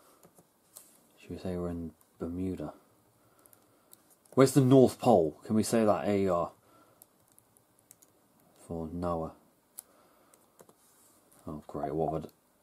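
Laptop keys click softly now and then.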